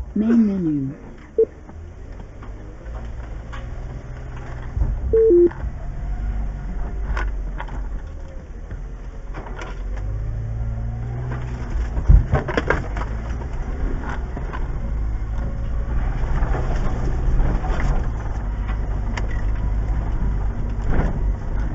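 A vehicle engine rumbles low and steady as it drives slowly.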